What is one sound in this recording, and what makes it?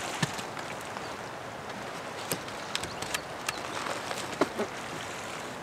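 Twigs clatter and snap as they are laid down.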